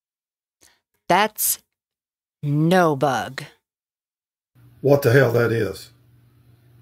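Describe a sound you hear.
A man talks with animation, heard through a small speaker.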